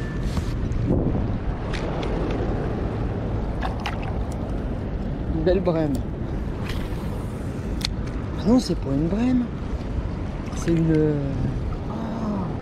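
Water ripples and laps gently near the shore.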